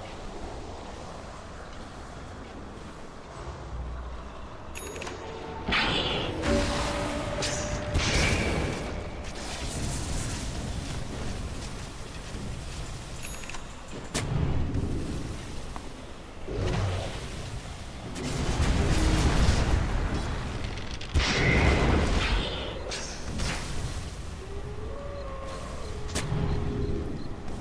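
Video game spells and attacks whoosh and crackle.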